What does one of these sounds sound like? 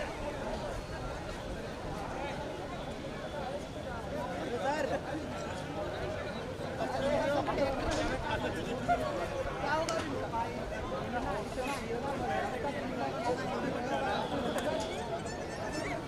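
A crowd of men chatter and call out outdoors.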